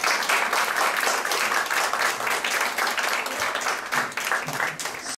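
An audience applauds steadily in an echoing hall.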